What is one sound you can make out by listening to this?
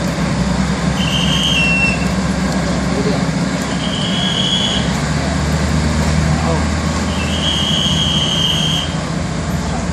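A diesel railcar train sounds its horn in short blasts.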